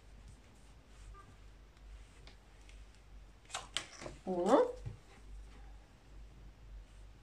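Paper and fabric rustle softly as they are folded by hand.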